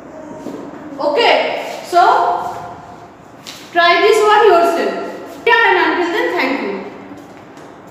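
A woman speaks clearly and calmly, close by.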